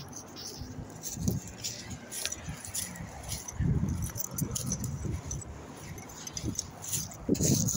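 Clothing rubs and rustles close against the microphone.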